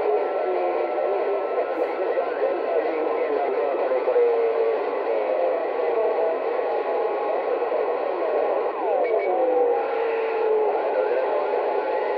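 A radio receiver hisses with static and wavering, warbling signal tones.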